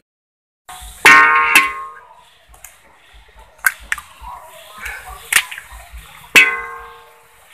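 A metal spoon strikes a metal wok with a ringing clang.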